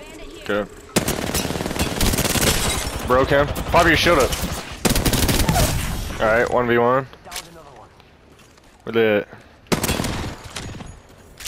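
Rapid gunfire rattles in quick bursts close by.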